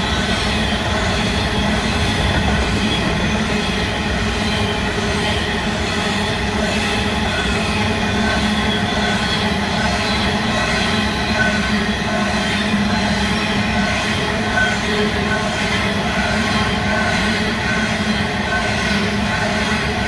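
A long freight train rumbles past close by.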